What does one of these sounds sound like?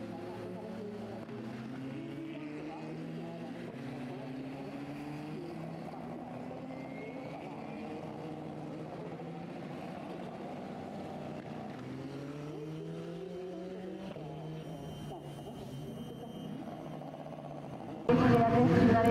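Racing car engines rumble and rev as the cars pull slowly away.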